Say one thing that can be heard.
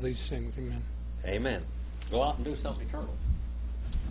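An elderly man speaks briefly through a microphone.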